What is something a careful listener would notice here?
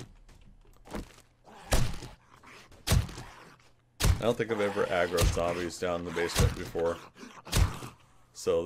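A knife hacks into flesh with repeated wet thuds.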